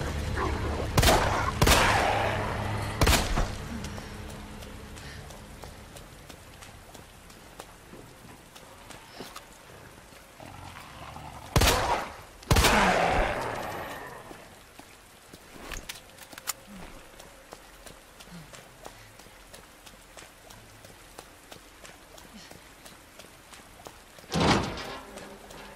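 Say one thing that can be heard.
Gunshots ring out one at a time, each echoing off nearby walls.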